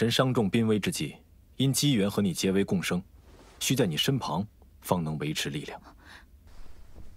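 A young man speaks calmly and clearly.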